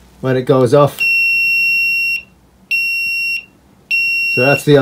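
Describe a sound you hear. An electronic alarm beeps in long, steady, high tones.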